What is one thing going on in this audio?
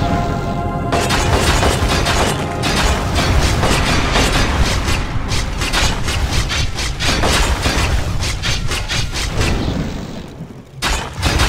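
Spell blasts whoosh and crackle in a fight.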